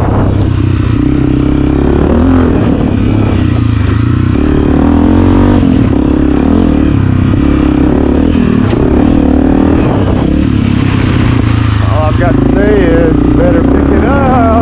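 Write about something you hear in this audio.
A dirt bike engine revs loudly up close, rising and falling as the rider shifts gears.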